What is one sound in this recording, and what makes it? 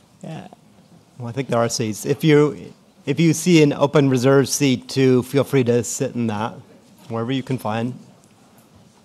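A man speaks clearly through a loudspeaker in a large hall.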